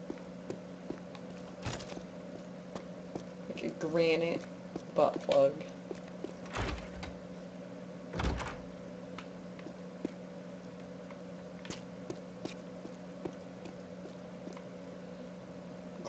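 Footsteps patter quickly on a stone floor in an echoing hall.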